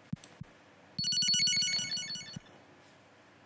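A short, bright electronic jingle plays from a video game.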